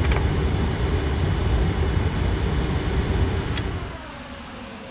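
Jet engines rumble steadily in a cockpit.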